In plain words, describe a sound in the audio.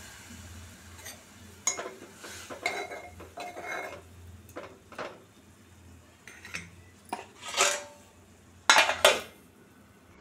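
A metal spoon scrapes and clinks against a steel pot while stirring vegetables.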